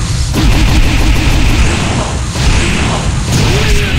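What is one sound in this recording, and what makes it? An energy blast whooshes and crackles loudly.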